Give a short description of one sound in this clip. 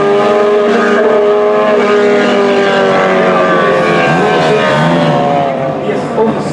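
Car engines roar as two cars speed away down a track.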